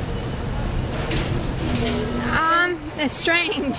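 A young woman speaks into a microphone up close, with animation.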